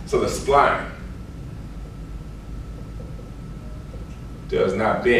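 A man speaks calmly, echoing slightly in a room.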